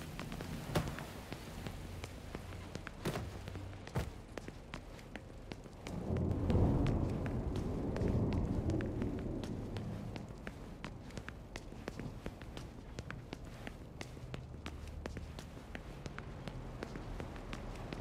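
Footsteps tap steadily on a wooden floor and stairs.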